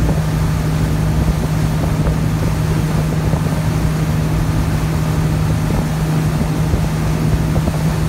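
Water rushes and churns in a boat's wake.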